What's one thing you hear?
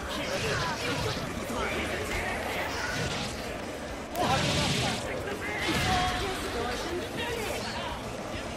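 Video game hits and magic blasts crash and whoosh in quick bursts.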